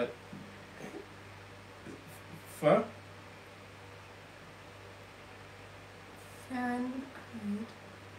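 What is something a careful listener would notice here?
A woman speaks briefly and calmly nearby.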